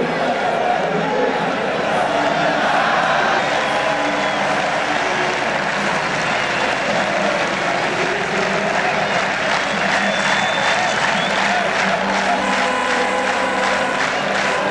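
A large stadium crowd cheers and chants loudly outdoors.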